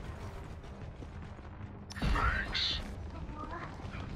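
An energy beam crackles and buzzes from a weapon.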